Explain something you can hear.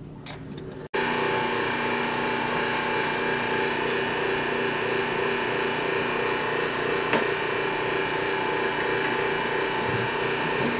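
An electric rolling mill whirs and hums.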